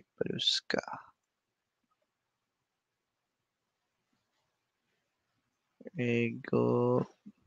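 A young man speaks calmly into a headset microphone, heard as if through an online call.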